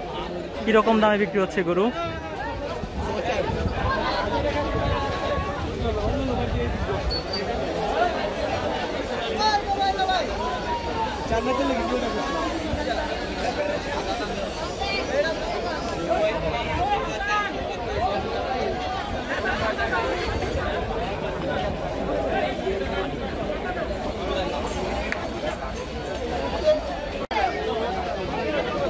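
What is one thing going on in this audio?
A dense crowd of men chatters loudly all around, outdoors.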